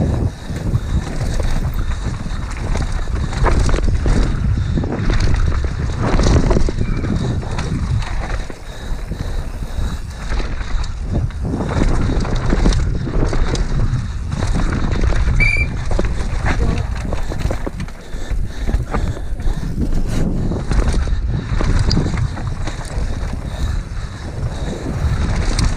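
A bicycle's frame and chain rattle and clatter over bumps.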